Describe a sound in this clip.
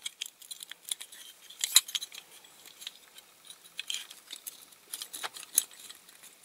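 Small metal parts click and rattle as fingers handle them.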